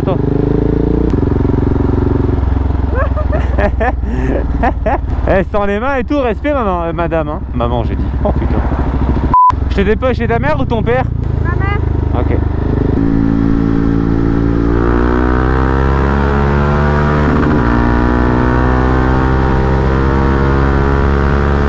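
A motorcycle engine hums and revs up and down through gear changes.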